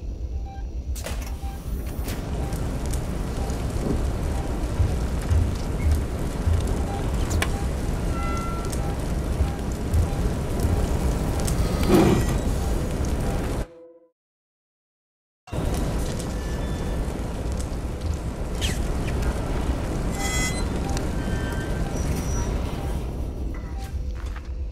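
A motion tracker beeps softly at a steady pace.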